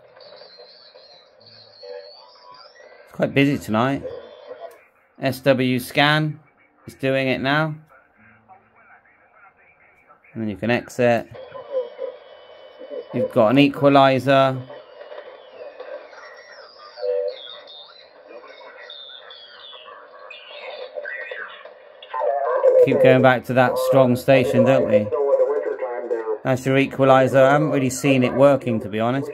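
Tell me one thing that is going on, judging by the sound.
A radio receiver hisses and chirps faintly as it tunes across stations.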